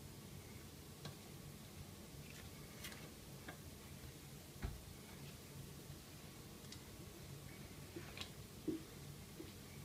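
Light clicks and taps sound from a metal pan.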